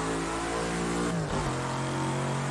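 A racing car engine dips sharply in pitch as the gear changes.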